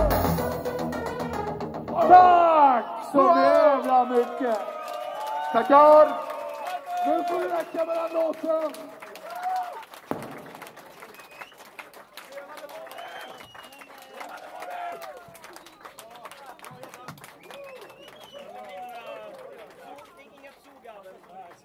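A crowd shouts and cheers nearby.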